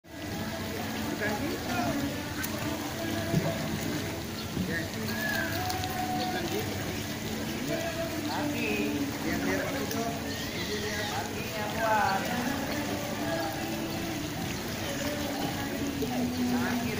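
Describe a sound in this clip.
Water splashes as children swim.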